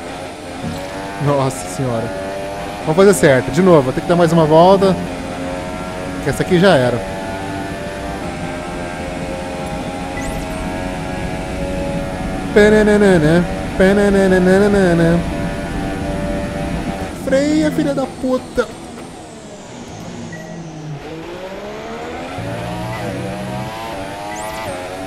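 A racing car engine roars steadily, with its pitch rising and falling as it revs up and shifts gear.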